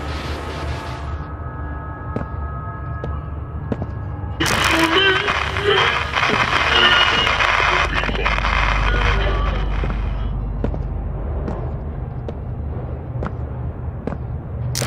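Footsteps thud on a floor.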